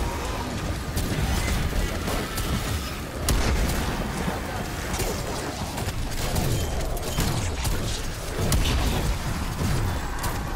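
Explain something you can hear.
Gunfire and blasts crackle rapidly in a game.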